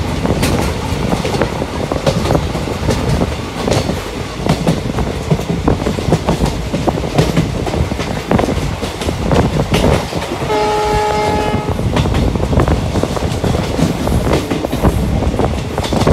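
Train wheels clatter rhythmically over the rails, with a steady rumble.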